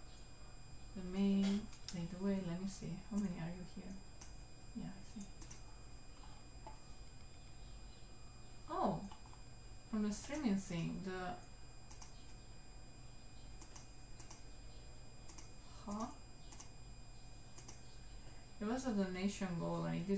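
A young woman talks casually into a close microphone, with pauses.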